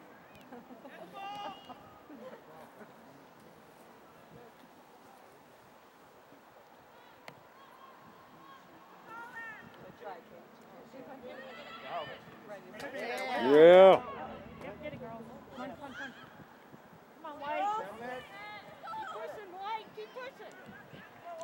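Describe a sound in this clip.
Young players shout to each other from a distance across an open field.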